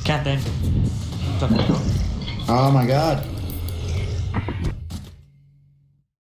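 Swords clash and spells crackle in a noisy fight.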